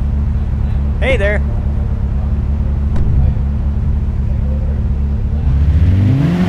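A sports car engine idles with a low rumble.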